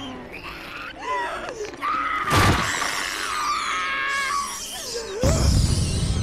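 A woman screams loudly.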